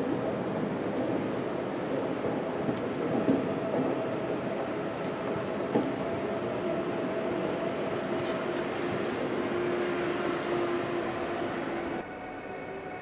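A high-speed electric train rushes past on rails.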